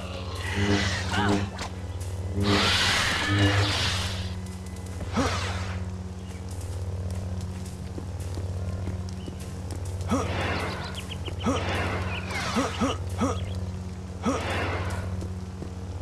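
A lightsaber swooshes through the air in quick swings.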